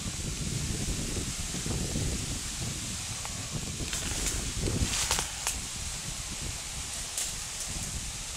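A horse's hooves thud softly on a dirt path.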